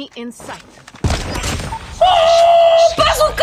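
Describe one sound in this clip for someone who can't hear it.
Gunshots fire rapidly in a game.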